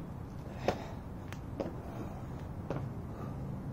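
Sneakers thud on a hard outdoor surface.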